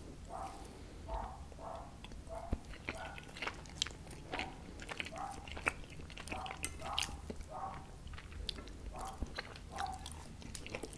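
A young man chews food wetly and noisily, very close to a microphone.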